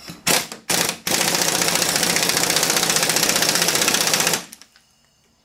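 A cordless power driver whirs steadily, then stops.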